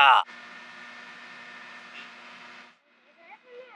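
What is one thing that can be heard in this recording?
A parked train hums steadily.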